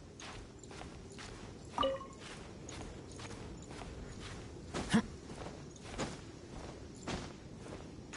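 A game character's boots scrape and thud while climbing a rock wall.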